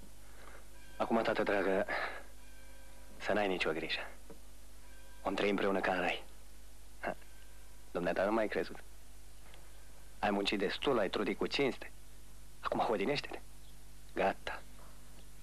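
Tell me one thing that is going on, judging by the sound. A man speaks calmly and conversationally, close by.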